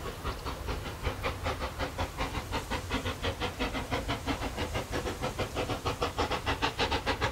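A low rumble of the steam engine's wheels rolls along the rails.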